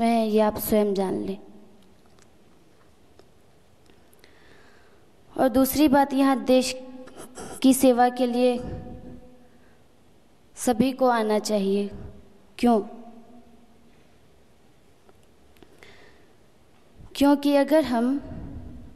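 A young woman speaks slowly and clearly into a microphone, with pauses between phrases.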